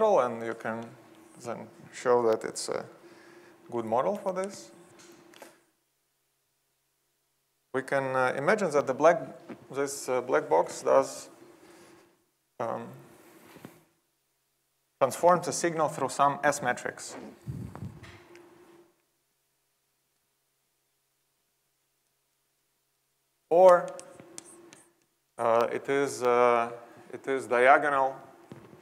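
A man lectures calmly, heard through a microphone.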